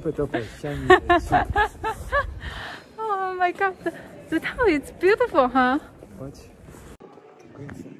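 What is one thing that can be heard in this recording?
A man laughs and talks cheerfully nearby.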